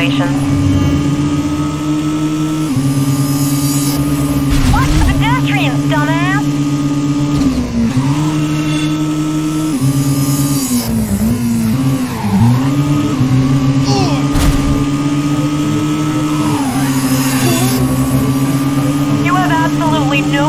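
A sports car engine roars steadily at high revs, shifting gears now and then.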